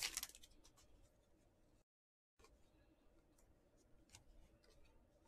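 Glossy trading cards shuffle and slide against each other in hands.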